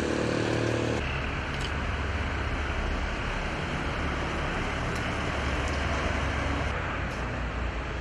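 A camper van pulls away on a road.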